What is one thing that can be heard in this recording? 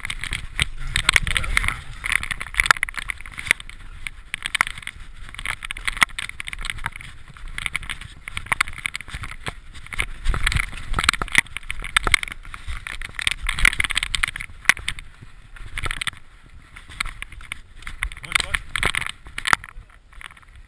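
Bicycle tyres rattle and crunch over a rough, rocky dirt trail.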